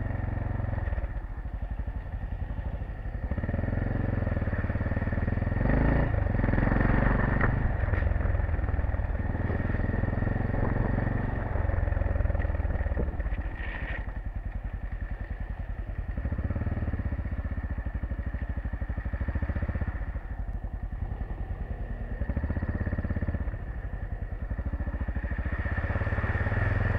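Tyres crunch over gravel and splash through puddles.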